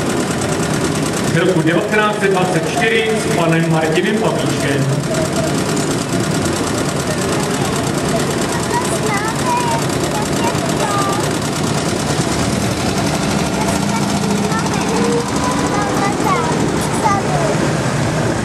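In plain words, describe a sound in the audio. An old car engine rumbles as cars roll slowly past.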